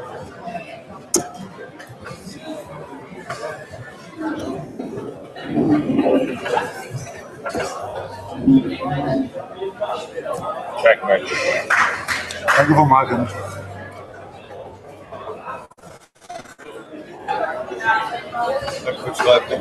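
Men talk nearby in an echoing hall.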